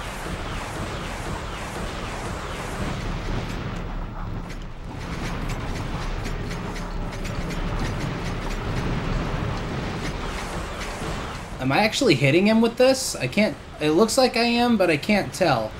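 Rockets whoosh through the air.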